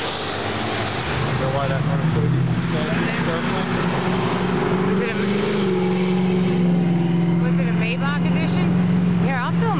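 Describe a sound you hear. A car engine roars as a car accelerates along the road.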